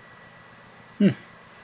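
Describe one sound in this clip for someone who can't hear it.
A man briefly makes a short vocal sound close to a microphone.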